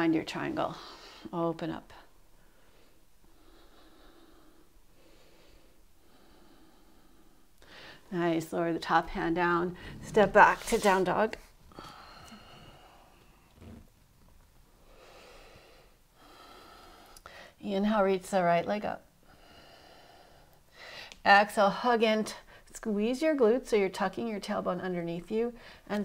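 A woman speaks calmly and clearly, giving instructions.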